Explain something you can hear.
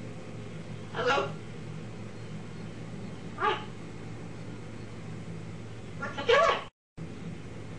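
A parrot squawks loudly close by, a few times.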